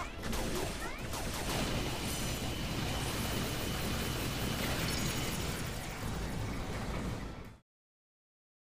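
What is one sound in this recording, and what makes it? A robot tank in a video game rumbles and clanks.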